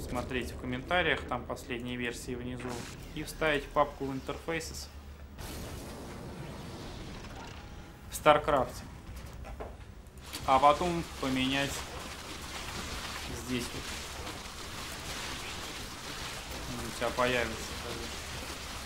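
A young man talks casually into a microphone, close by.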